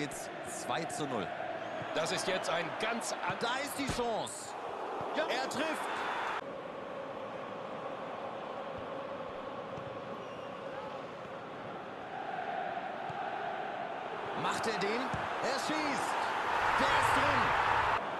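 A stadium crowd roars steadily in the distance.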